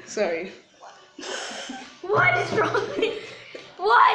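A boy laughs close by.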